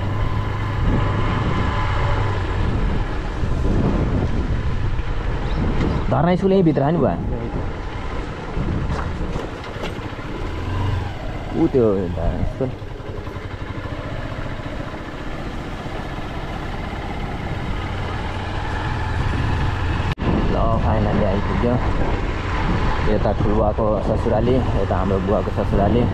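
Tyres crunch over a rough dirt road.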